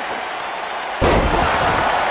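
A wrestler's body slams heavily onto the ring mat.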